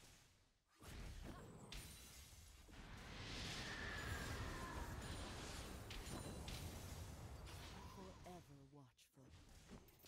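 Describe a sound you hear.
Game spell blasts and hits crackle and whoosh during a fight.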